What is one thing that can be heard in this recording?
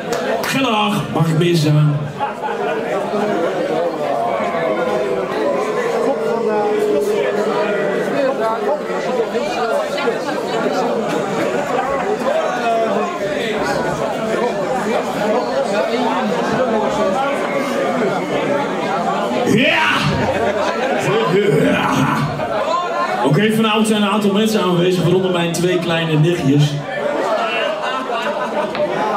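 A rock band plays loudly and distorted in a large echoing hall.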